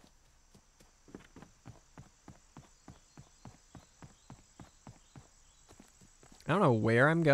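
Footsteps tread steadily on soft ground.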